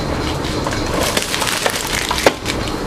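Plastic toy packages rustle and click as a hand handles them.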